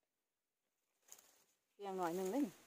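Dry leaves and twigs rustle as a hand reaches through undergrowth.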